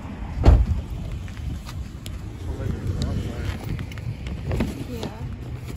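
Hail patters and clicks on pavement.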